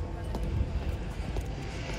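Boots tread slowly on a stone pavement.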